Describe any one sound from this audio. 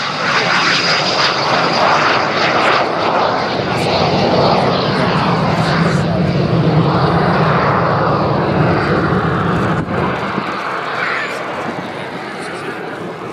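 A jet engine roars loudly overhead and slowly fades into the distance.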